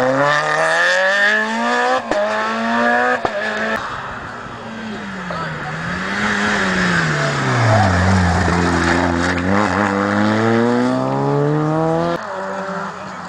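A rally car engine revs hard and changes gear as it races past.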